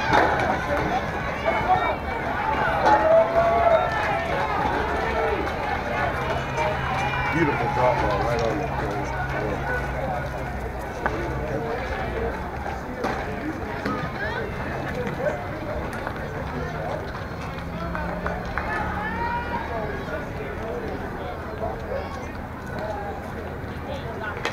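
A group of young women cheer and chant loudly from nearby outdoors.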